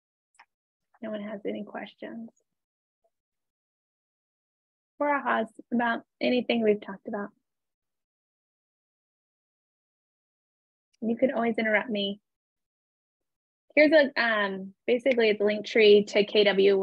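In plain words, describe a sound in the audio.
A young woman speaks with animation through an online call, in short bursts with pauses.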